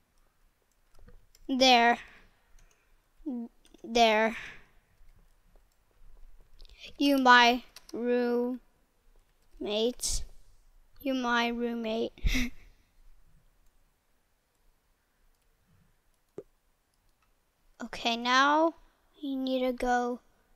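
A young boy talks with animation close to a headset microphone.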